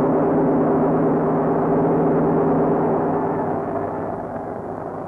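Aircraft engines drone overhead.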